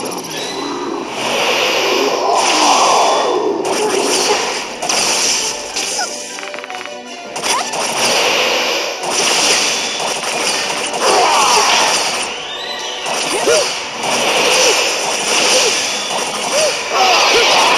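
Magic attacks blast and crackle in quick bursts.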